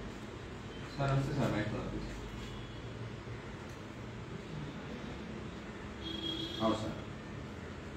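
A man speaks briefly into a phone nearby.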